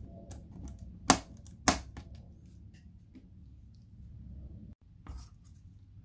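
A plastic tool pries at a laptop case with sharp clicks.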